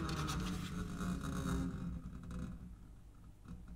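An acoustic guitar chord rings out and fades.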